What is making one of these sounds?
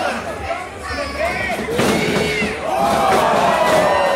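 A wrestler's body thumps onto a ring canvas.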